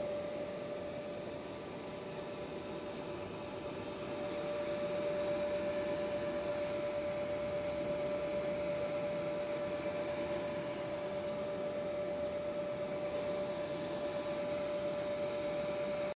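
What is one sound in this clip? A machine hums with a steady high tone.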